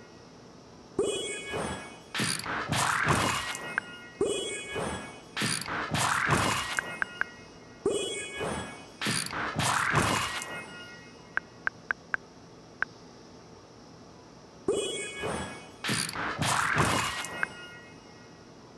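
A bright game jingle swells and chimes.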